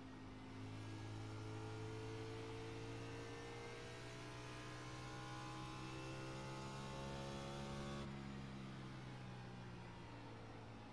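A race car engine roars steadily, climbing in pitch, then drops in pitch suddenly.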